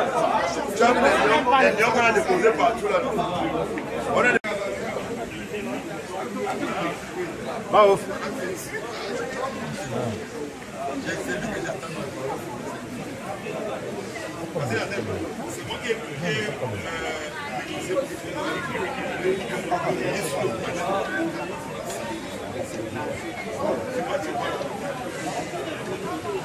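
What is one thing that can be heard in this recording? A crowd of men and women chatter loudly nearby in an echoing hall.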